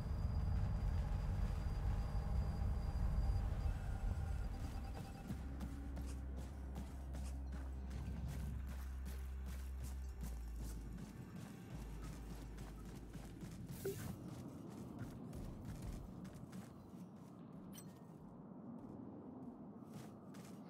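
Heavy metallic footsteps thud and clank on the ground.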